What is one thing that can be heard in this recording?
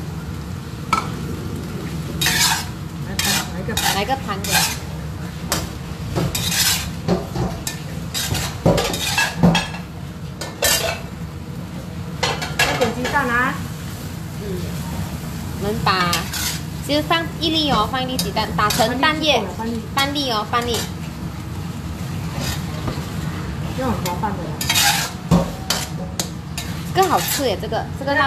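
A metal spatula scrapes and clatters against a wok.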